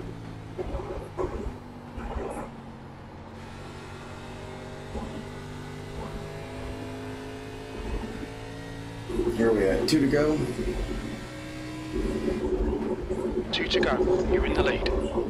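A race car engine drones steadily, rising and falling in pitch.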